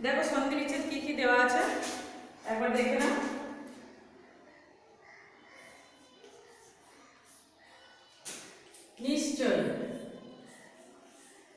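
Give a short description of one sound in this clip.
A young woman speaks aloud nearby.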